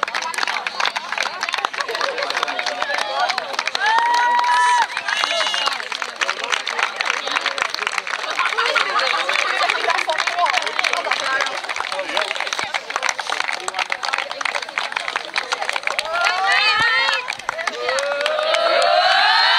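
A crowd claps and applauds outdoors.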